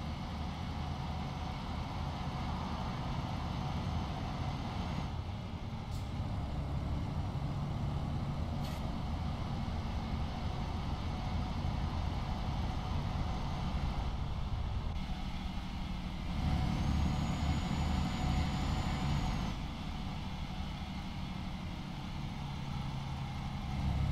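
A heavy truck's diesel engine rumbles steadily.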